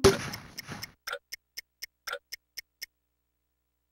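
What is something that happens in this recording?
A video game plays a quick run of short, bright blips that stop suddenly.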